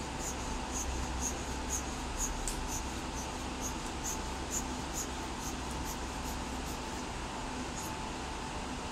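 A rubber bulb is squeezed over and over with soft, rhythmic clicks.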